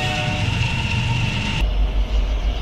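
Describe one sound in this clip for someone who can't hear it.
A double-stack freight train rumbles past on the rails.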